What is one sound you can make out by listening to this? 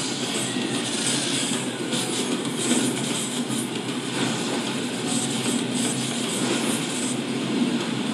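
A fiery whirlwind roars and swirls.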